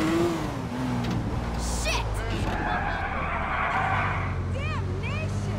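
A car engine revs steadily.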